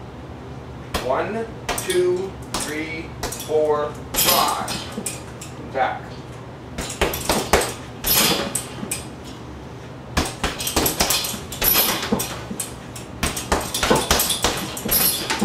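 Fists thud rapidly against a heavy punching bag.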